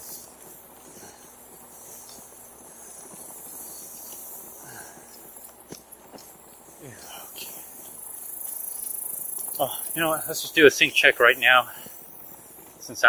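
Wind rushes past a moving bicycle.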